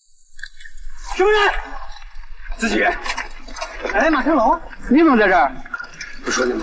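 A young man shouts loudly nearby.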